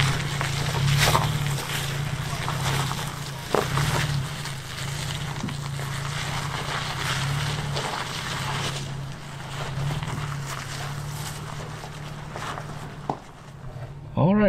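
Tyres crunch and grind over rock and gravel.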